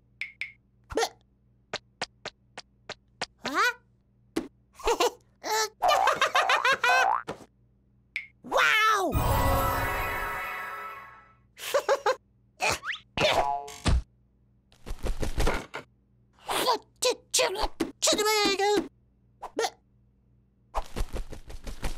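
A small cartoon chick squeaks and chirps in short bursts.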